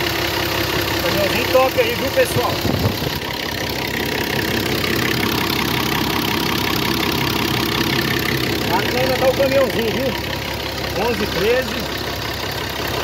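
An engine idles with a steady rumble.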